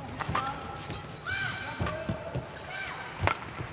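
Shoes squeak on a court floor.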